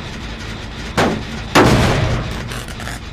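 A metal machine is struck with loud clanking bangs.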